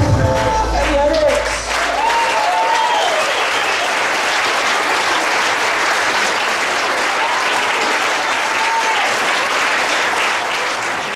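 A crowd of young women and men cheers and screams loudly.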